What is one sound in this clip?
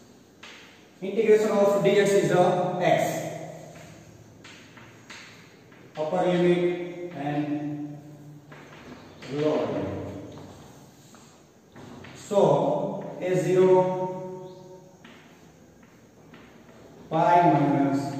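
A young man lectures calmly, pausing between phrases.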